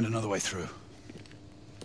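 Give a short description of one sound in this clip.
A man speaks tensely, with an echo.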